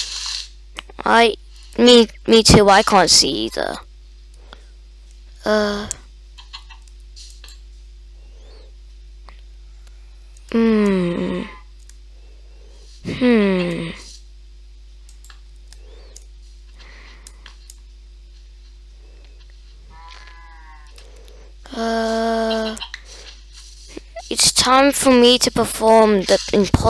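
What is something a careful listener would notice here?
A boy talks close to a microphone in short bursts.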